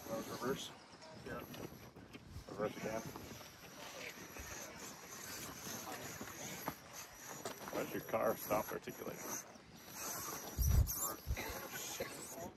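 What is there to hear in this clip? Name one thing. Plastic wheels scrape and grind over rock.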